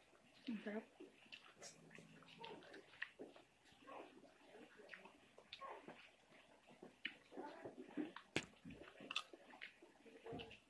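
Crisp chips crunch as they are eaten.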